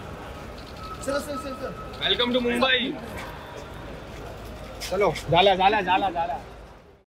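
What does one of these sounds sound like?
A young man talks excitedly close by.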